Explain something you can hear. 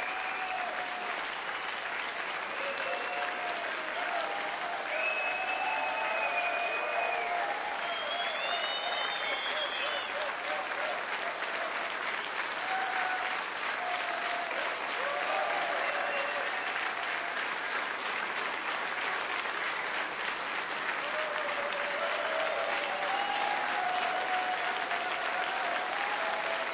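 Audience members whistle and cheer loudly.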